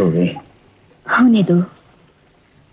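A man sings close by.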